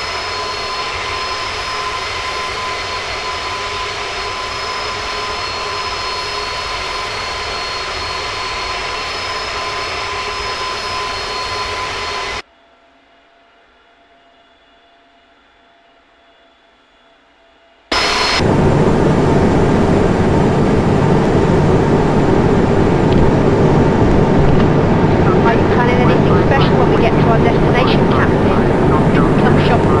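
Jet engines roar steadily.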